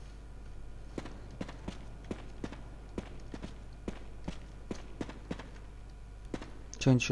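Footsteps fall on a hard floor.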